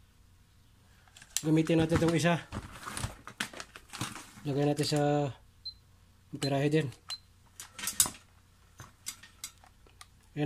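Plastic meters knock and clatter as hands handle them.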